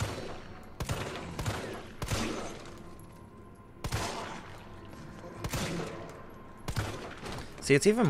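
A handgun fires several sharp shots in an echoing corridor.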